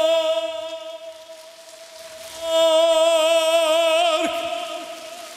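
A man sings loudly into a microphone, holding long notes in a large echoing hall.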